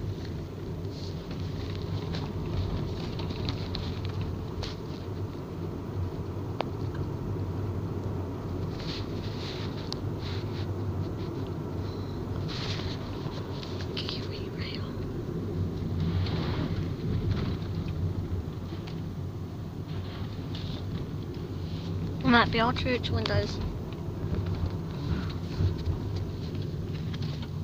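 A vehicle engine hums steadily from inside.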